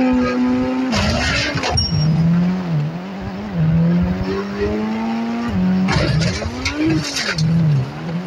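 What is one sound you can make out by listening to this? Car tyres scrape and screech on the ground.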